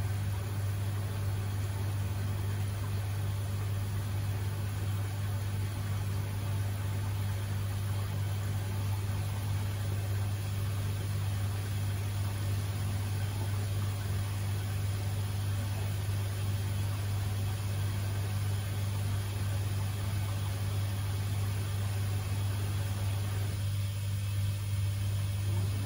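A washing machine hums steadily as its drum turns slowly.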